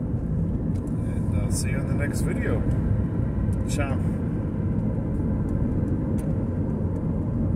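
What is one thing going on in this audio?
A car's engine and tyres rumble steadily from inside the car.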